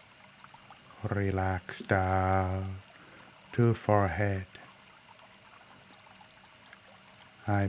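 A man chants slowly in a deep, steady voice through a microphone.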